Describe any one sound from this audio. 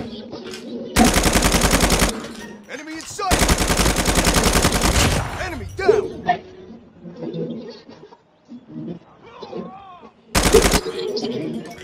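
An automatic rifle fires rapid bursts, loud and close.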